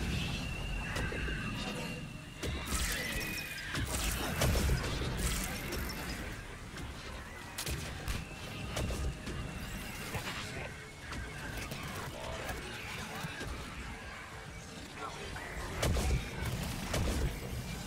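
Energy blasts burst with a crackling whoosh.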